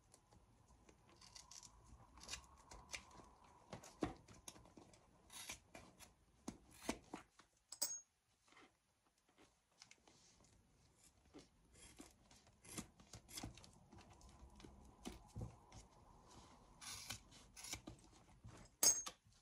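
Scissors snip through thread in short crisp clicks.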